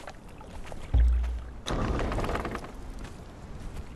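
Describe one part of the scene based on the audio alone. A heavy wooden gate thuds and creaks open.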